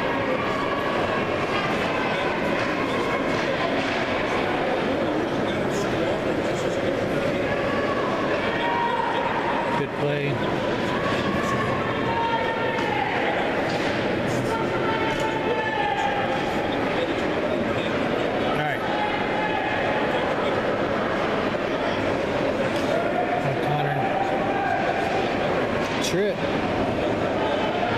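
Young players shout to each other across the ice.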